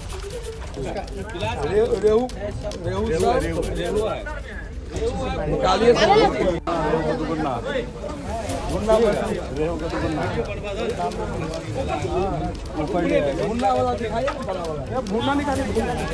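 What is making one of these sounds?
Men talk nearby among a crowd.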